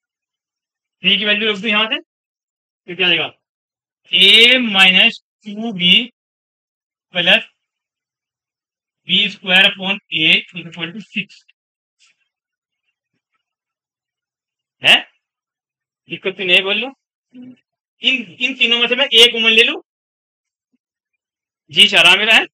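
A man speaks in a calm, explaining tone close by.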